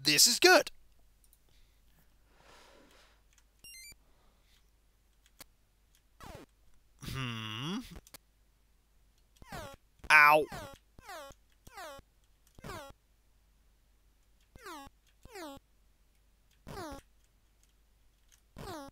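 Short chiptune sound effects chirp and sweep downward in quick bursts.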